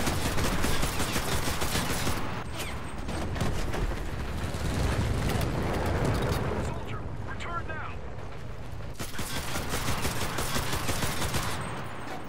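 Rifle shots crack close by.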